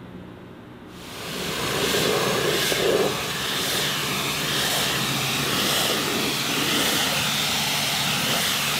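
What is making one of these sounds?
A pressure washer sprays water with a loud, steady hiss.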